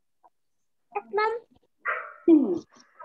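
A young boy speaks loudly and with animation over an online call.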